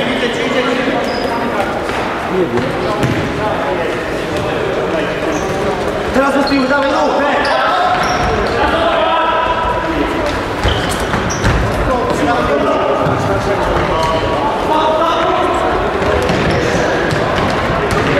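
Young men shout to each other across a large echoing gym.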